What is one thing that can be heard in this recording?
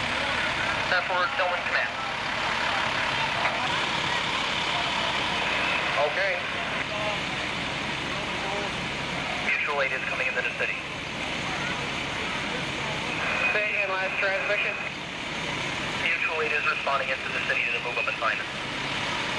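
A fire engine idles with a steady rumble.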